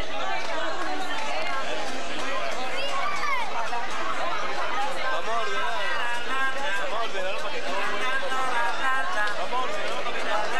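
A crowd of men and women chatter excitedly close by.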